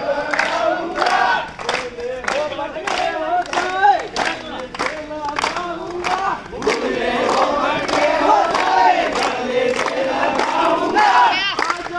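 A crowd of young men chants and shouts loudly together.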